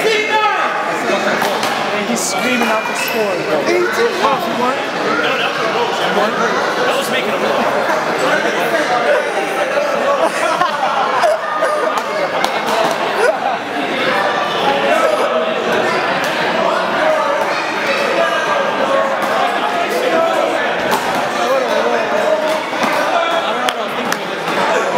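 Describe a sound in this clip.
Several young men talk and call out in a large echoing hall.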